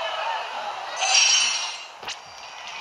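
A bright, sparkling chime rings out briefly.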